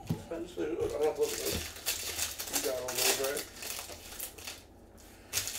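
Foil wrapping crinkles as it is torn open.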